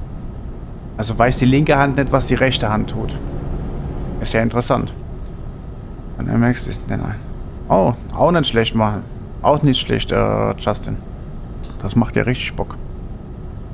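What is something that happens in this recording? A man speaks into a headset microphone.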